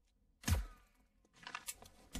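A rifle shot cracks loudly and echoes.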